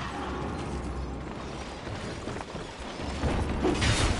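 A heavy sword clashes against armour.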